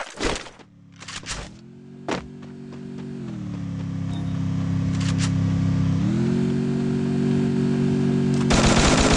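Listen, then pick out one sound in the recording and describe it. Footsteps thud quickly on the ground as a runner moves along.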